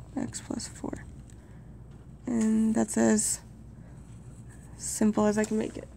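A pen scratches briefly on paper.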